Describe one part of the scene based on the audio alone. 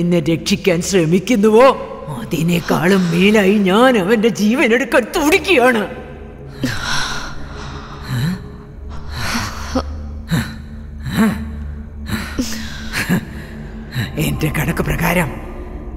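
An elderly woman speaks with animation, close by.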